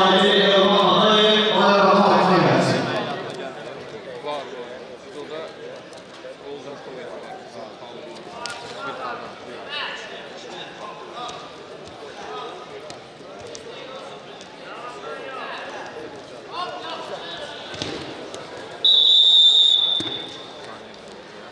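Wrestlers' shoes squeak and thump on a mat.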